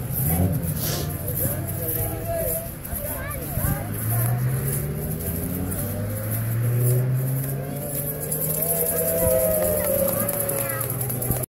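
A woman sings outdoors.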